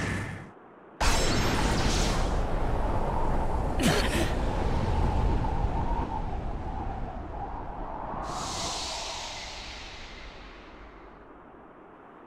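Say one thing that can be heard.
Wind rushes and roars, then slowly dies away.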